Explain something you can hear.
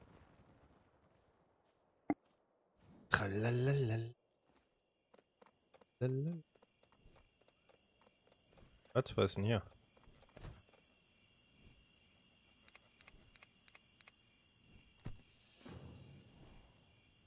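Fiery magical wings whoosh and crackle.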